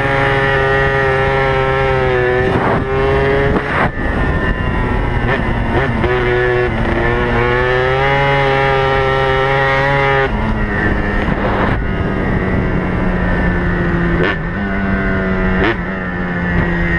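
Wind buffets against the rider at speed.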